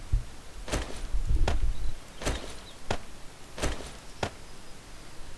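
Short rustling clicks sound as items are picked up and dropped, several times.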